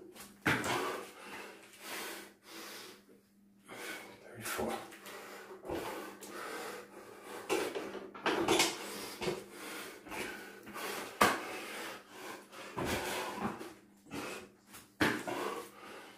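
Bare feet thud on a mat as a man jumps.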